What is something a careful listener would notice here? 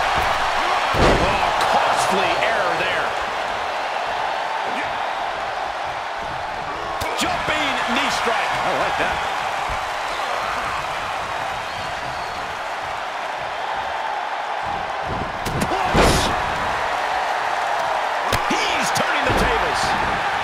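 Heavy bodies thud hard onto a wrestling mat.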